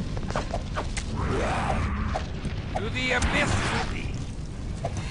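A monster growls and roars.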